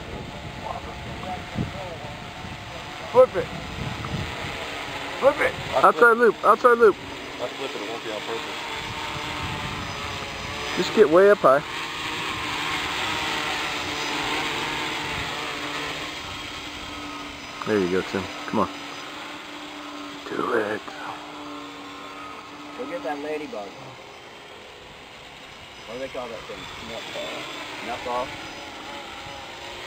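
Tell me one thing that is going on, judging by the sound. A drone's propellers buzz steadily as it hovers and flies.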